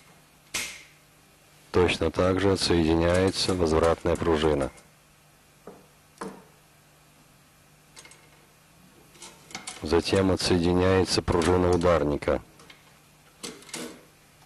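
Metal rifle parts click and clack as they are taken apart by hand.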